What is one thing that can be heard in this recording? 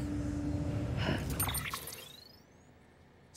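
A game menu opens with a whooshing electronic chime.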